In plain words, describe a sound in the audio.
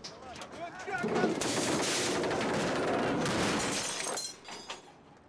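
A car crashes down from a car transporter.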